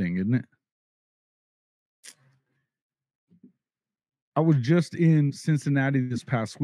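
A middle-aged man speaks with animation, close to a microphone, pausing between phrases.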